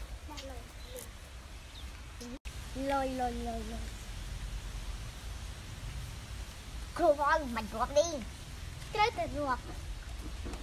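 Young children talk excitedly close by.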